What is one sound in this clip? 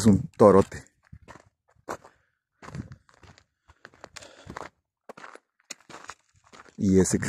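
Footsteps crunch on a dry dirt trail.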